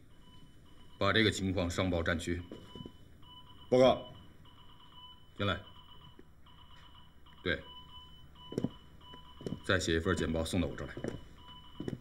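A man speaks firmly into a telephone.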